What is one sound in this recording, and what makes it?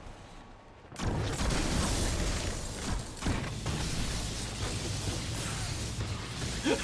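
A gun fires and blasts roar loudly.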